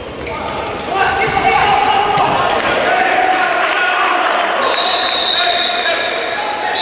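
A crowd of spectators cheers in an echoing indoor hall.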